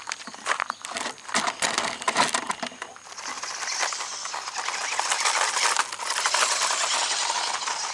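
A small remote-control car's tyres crunch and scatter over loose gravel.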